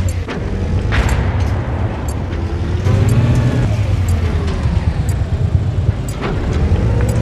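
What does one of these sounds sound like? A cannon fires in sharp bangs.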